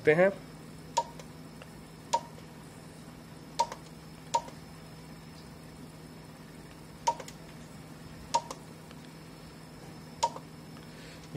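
An electronic device beeps briefly each time a key is pressed.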